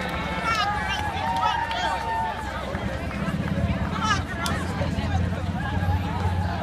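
Many runners' feet patter on the pavement.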